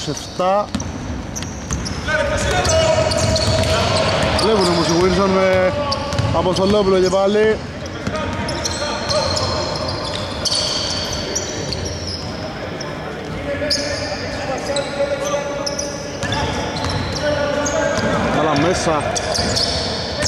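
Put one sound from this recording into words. Men shout to each other across the court.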